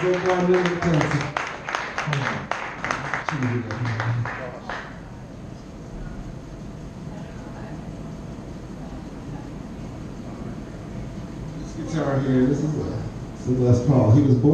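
A man sings into a microphone, amplified through loudspeakers.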